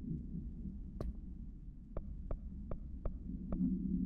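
Short soft clicks sound as a menu selection moves, several times.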